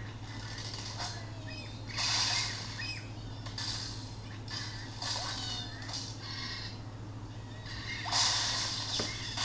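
Game sound effects of launches and crashes play from a small tablet speaker.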